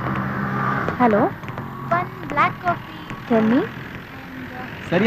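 A woman speaks into a phone with animation.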